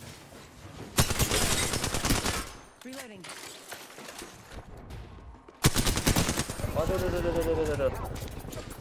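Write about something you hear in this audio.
Rapid gunfire bursts loudly.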